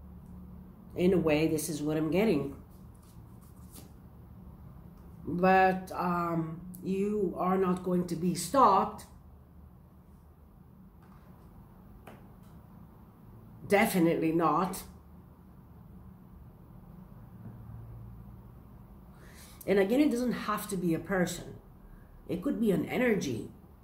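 A middle-aged woman speaks calmly and close by, in short bursts with pauses.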